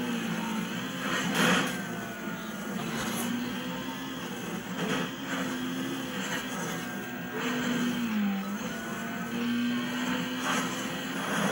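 Tyres screech as a racing car takes bends.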